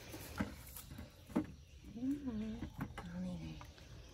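Vegetables thump into a plastic bucket.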